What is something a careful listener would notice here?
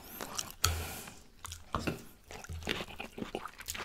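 A fork scrapes and taps on a plate.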